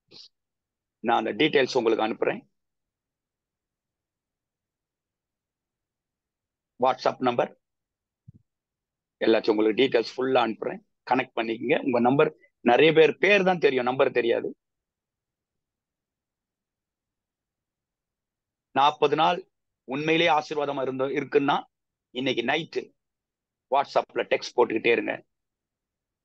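A middle-aged man speaks earnestly in short bursts with long pauses, heard through an online call.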